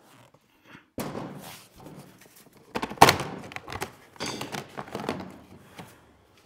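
Plastic seat parts knock and clatter on a table.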